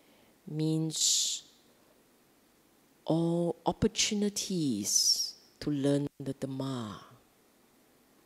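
A middle-aged woman speaks calmly into a microphone in short phrases.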